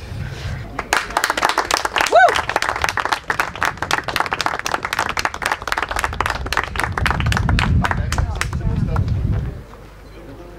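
A crowd applauds outdoors.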